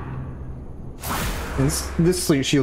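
A large snake hisses and strikes.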